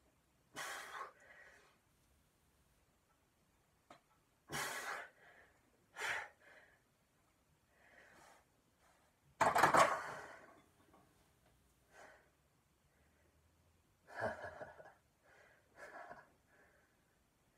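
A young man grunts and breathes hard with effort, close by.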